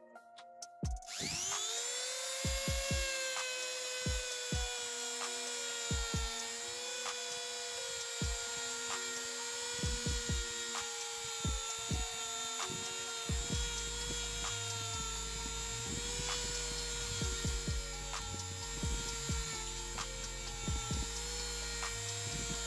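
A rotary tool whines steadily at high speed.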